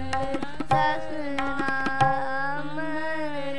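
Hand drums tap along.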